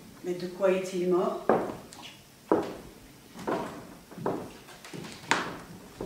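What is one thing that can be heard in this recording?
Footsteps knock on a wooden floor.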